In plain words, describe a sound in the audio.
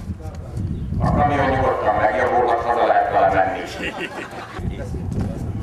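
A man speaks loudly into a microphone outdoors.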